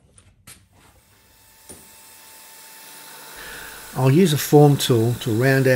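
A lathe motor whirs up and spins.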